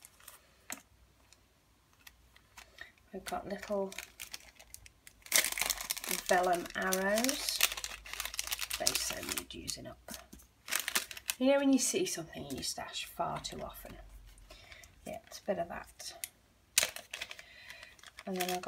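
Plastic packets rustle and crinkle as they are handled.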